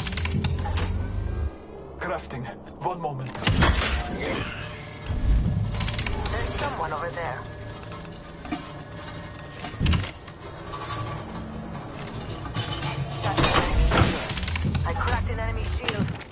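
Game menu sounds click and chime.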